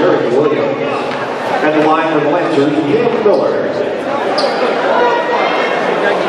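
A crowd of spectators chatters and cheers in a large echoing gym.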